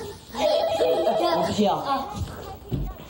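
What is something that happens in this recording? A group of young people laugh together nearby.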